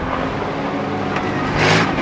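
A car's tyres skid on a wet track.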